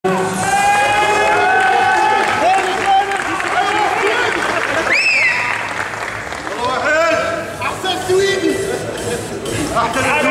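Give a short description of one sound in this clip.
Men in an audience shout loudly with animation nearby.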